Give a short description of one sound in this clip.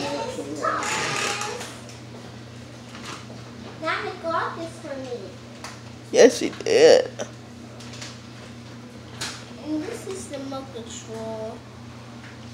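A young boy speaks excitedly nearby.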